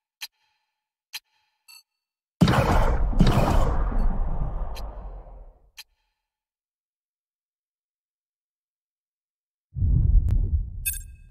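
Menu selections click sharply.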